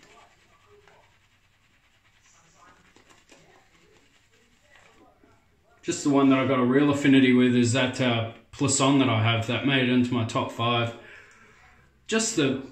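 A shaving brush swishes lather on skin.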